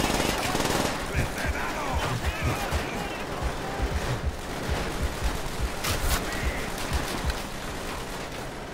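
Gunshots rattle in quick bursts.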